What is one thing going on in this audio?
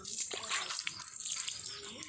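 Water splashes into a metal basin.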